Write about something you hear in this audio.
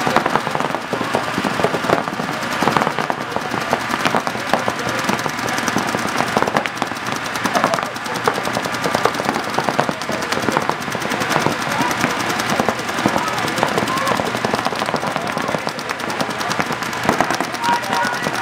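Paintball markers fire in rapid bursts of sharp pops.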